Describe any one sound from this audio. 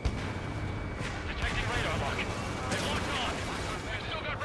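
Explosions burst and crackle nearby.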